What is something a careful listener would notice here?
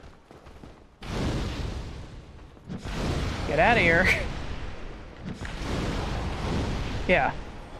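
Fire whooshes as a fireball is cast.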